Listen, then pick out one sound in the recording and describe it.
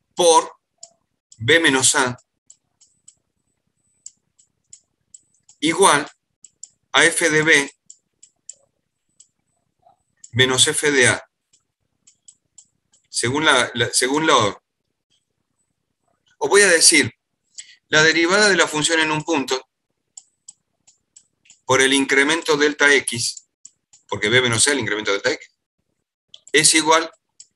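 A man speaks calmly in short phrases through an online call, with pauses between.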